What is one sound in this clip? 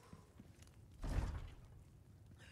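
A heavy door thuds as it is pushed.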